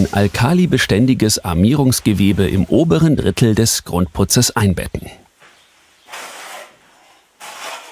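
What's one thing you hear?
A trowel scrapes across wet plaster.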